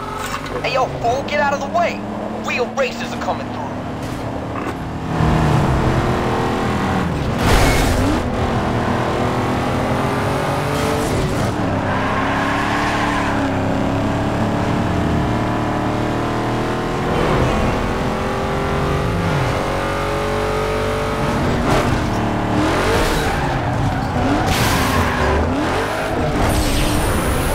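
A car engine roars and revs as the car races at high speed.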